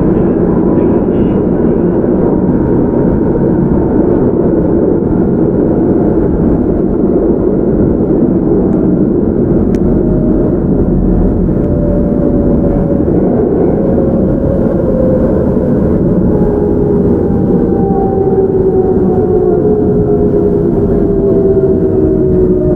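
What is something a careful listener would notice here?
A train rumbles steadily along the tracks close by.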